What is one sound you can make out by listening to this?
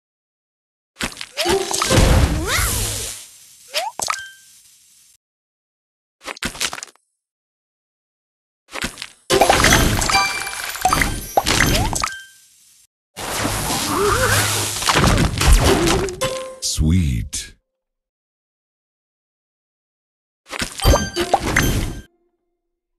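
Cartoon puzzle game sound effects pop and chime in short bursts.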